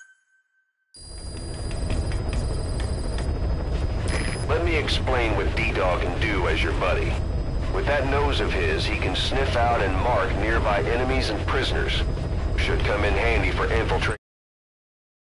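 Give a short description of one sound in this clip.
A helicopter engine rumbles steadily from inside the cabin.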